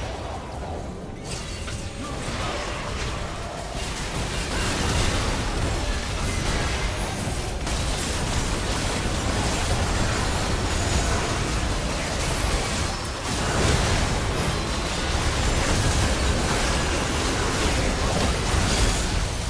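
Game spells and attacks crackle and boom in a busy fight.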